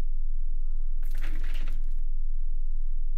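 A man sits down heavily in a chair with a rustle.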